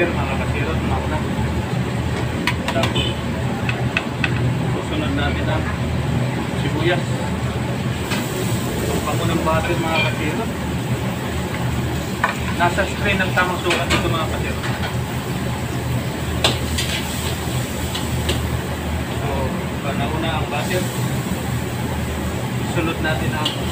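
Gas burners roar steadily.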